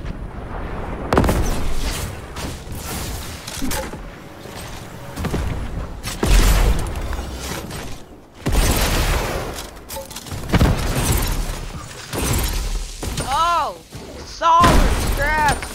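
Wooden walls and ramps snap into place with quick clattering thuds.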